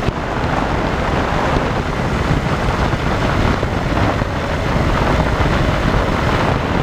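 A small plane's engine drones steadily up close.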